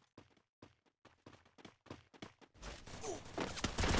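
Footsteps patter quickly on hard ground.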